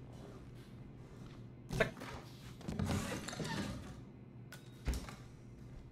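A freezer lid opens and thumps shut.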